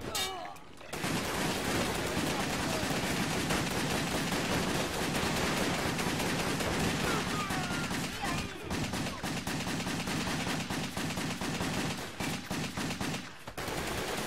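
Gunfire and blasts from a game ring out in rapid bursts.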